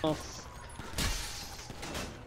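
A heavy vehicle crashes with a loud thud.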